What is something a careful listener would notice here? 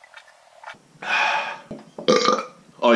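A man lets out a loud gasping exclamation.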